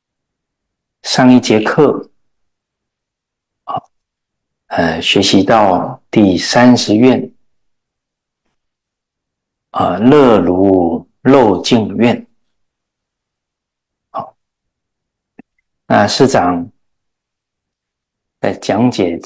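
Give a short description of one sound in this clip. A middle-aged man reads out calmly and slowly into a close microphone, with long pauses.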